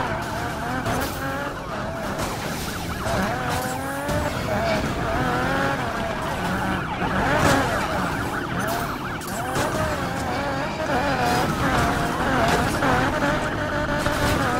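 Tyres skid and scrape over gravel.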